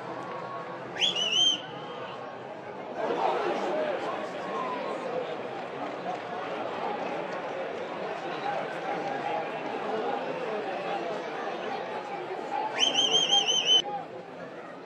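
A referee's whistle blows in sharp, trilling blasts.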